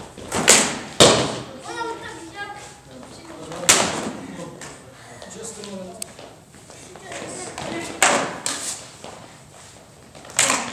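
Feet shuffle and stamp on a wooden floor.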